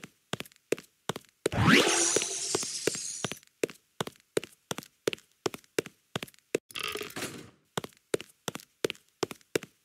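Quick footsteps tap steadily on a hard stone floor.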